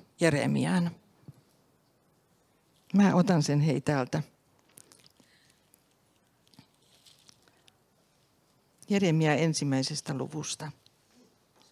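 An elderly woman speaks calmly into a microphone, with pauses.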